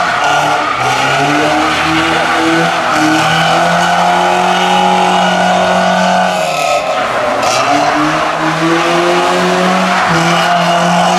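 A car engine revs hard and roars close by.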